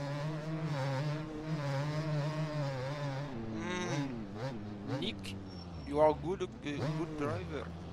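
A dirt bike engine drones and revs.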